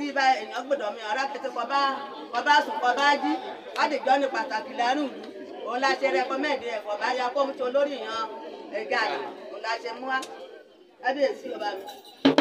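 A group of women sing together loudly and joyfully.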